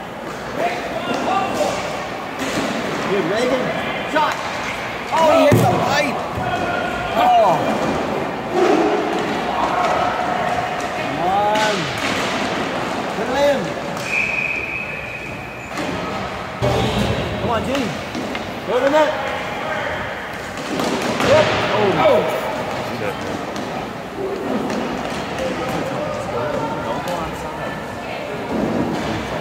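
Hockey sticks clack against a ball and each other.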